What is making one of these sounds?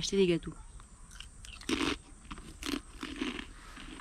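A woman crunches on a cracker.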